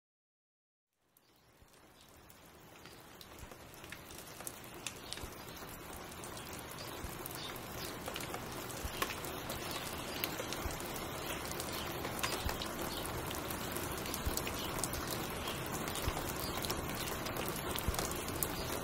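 A vinyl record crackles and pops as it spins on a turntable.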